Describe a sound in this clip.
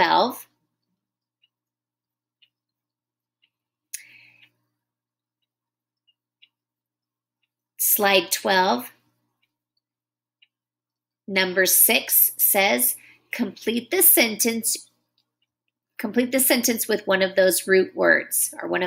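A woman speaks calmly and clearly, close to a microphone, in short phrases.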